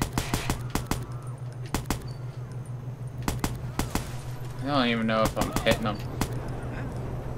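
An assault rifle fires in short bursts.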